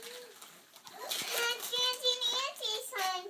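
A young girl speaks excitedly in a high voice close by.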